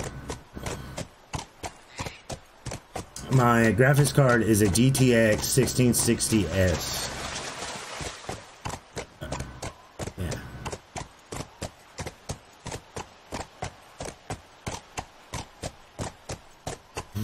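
Horse hooves clop steadily on hard ground.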